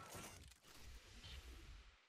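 A beam of light whooshes upward.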